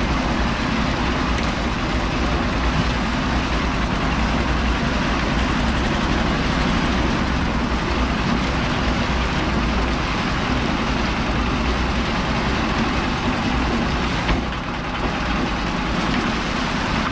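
A concrete mixer drum rumbles and churns steadily.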